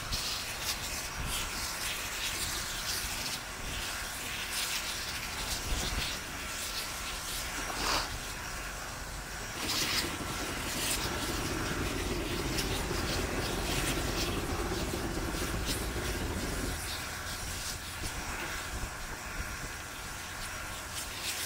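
A steam locomotive hisses and chuffs steadily outdoors.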